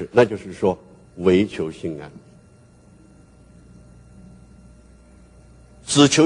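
An elderly man speaks slowly and deliberately through a microphone, pausing between phrases.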